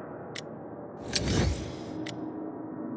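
A deep whoosh sweeps through as a game menu changes.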